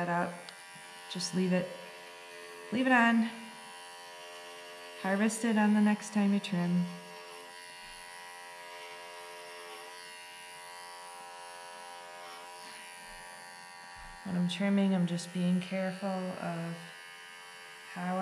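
Electric hair clippers buzz steadily up close.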